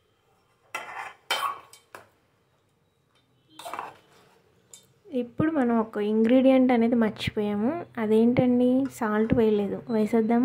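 A metal spoon scrapes and clinks against a pot while stirring rice.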